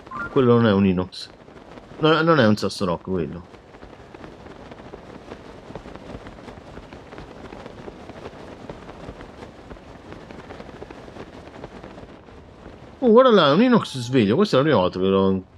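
Wind rushes softly and steadily.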